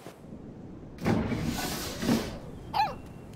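A door swings open with a rush of wind.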